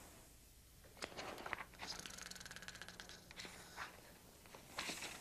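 Paper crinkles and tears.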